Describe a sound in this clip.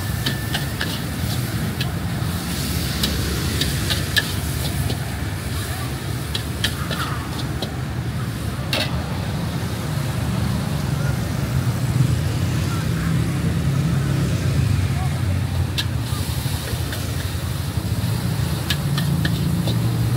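Traffic hums along a street nearby.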